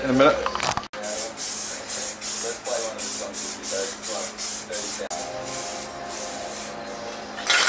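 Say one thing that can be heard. A spray can hisses in short, repeated bursts.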